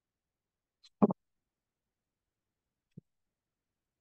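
Small pliers click against a metal ear hook.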